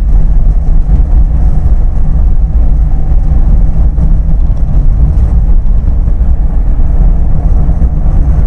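A car engine hums steadily from the inside.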